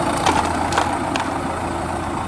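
Dirt and small stones pour into a plastic toy bin with a rattle.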